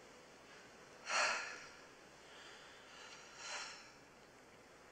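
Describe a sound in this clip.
A woman sobs and breathes shakily close by.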